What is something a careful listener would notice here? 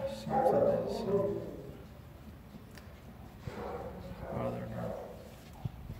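A dog whines close by.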